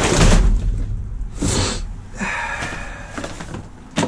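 Cardboard boxes scrape and shift.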